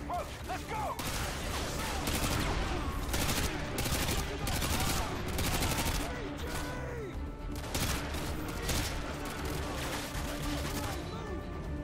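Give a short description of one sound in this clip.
A rifle fires in loud rapid bursts close by.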